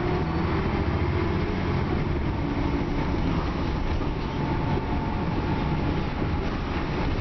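A bus interior rattles and creaks as the bus moves.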